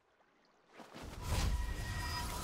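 A beam of magic hums down from above.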